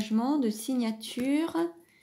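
A card slides softly onto a cloth-covered table.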